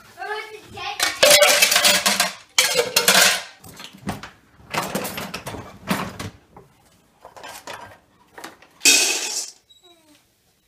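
Plastic dishes clatter and rattle.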